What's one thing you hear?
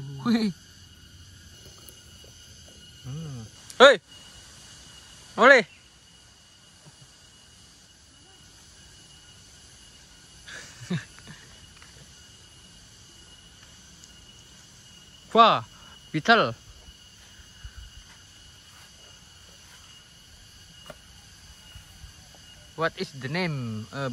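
Insects chirr steadily in the greenery.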